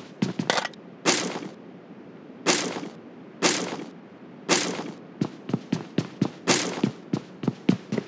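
Gear rustles as items are picked up.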